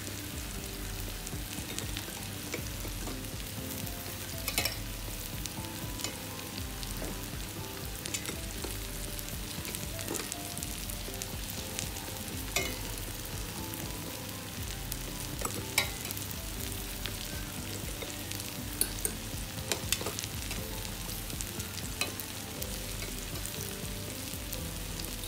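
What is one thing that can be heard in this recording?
Water simmers and bubbles gently in a pot.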